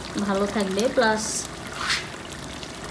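Oil pours into a pot of stew.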